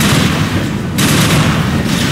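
A pistol fires sharp, quick shots.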